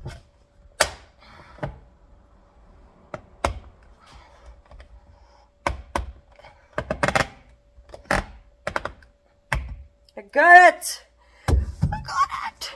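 Hard plastic knocks and clatters close by.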